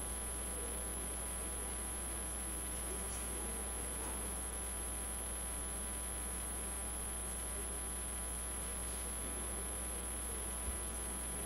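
Men and women murmur quietly in the distance in a large room.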